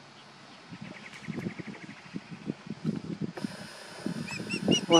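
A bird of prey gives short, high chirping calls close by.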